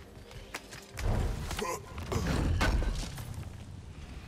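A wooden crate smashes and splinters.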